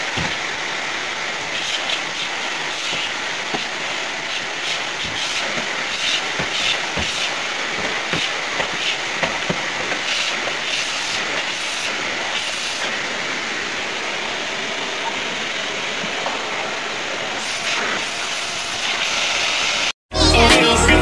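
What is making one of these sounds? A vacuum cleaner hums steadily nearby.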